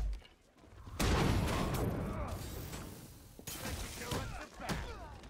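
A loud blast bursts and rumbles.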